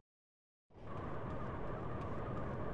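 Footsteps run on concrete.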